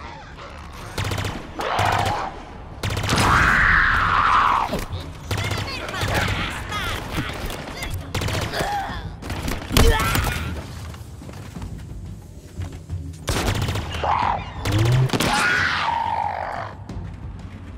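An energy weapon fires in crackling bursts.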